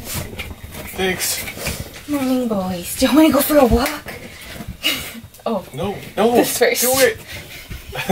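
A woman talks playfully in a high voice close by.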